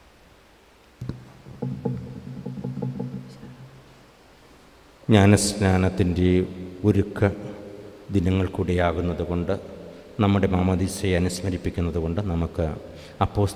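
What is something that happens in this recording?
A middle-aged man chants in a steady sung tone through a microphone.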